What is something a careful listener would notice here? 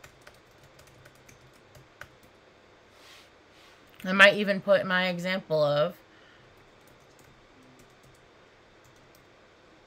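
Keyboard keys click softly as someone types.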